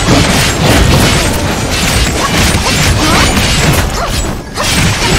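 Swords slash and magic blasts crash in rapid bursts.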